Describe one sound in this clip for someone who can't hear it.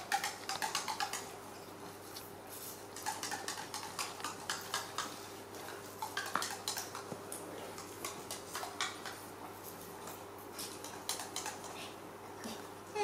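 A woman claps her hands in a quick, steady rhythm.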